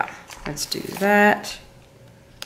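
A sticker peels off its backing with a short tearing sound.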